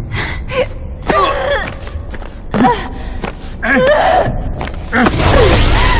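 A man grunts with effort during a struggle.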